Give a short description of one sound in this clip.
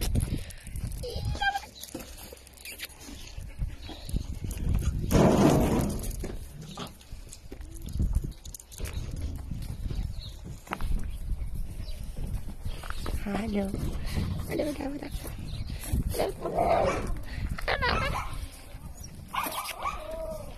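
Dogs' claws patter on concrete.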